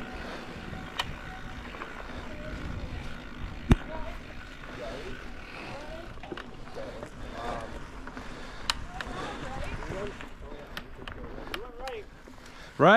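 A bicycle rattles and knocks over bumps on the trail.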